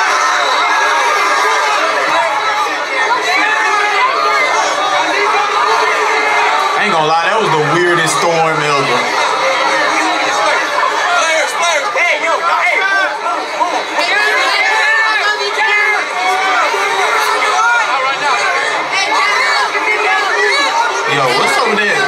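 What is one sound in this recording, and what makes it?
A large crowd of young people shouts and cheers in a big echoing hall.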